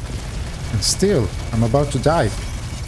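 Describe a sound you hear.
A man speaks loudly into a microphone.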